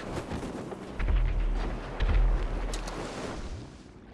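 A parachute snaps open with a heavy flapping thump.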